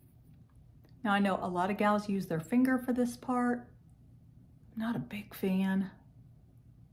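An older woman speaks calmly and close by.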